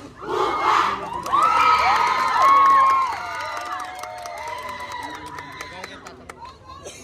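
A large group of young performers chants loudly in unison outdoors.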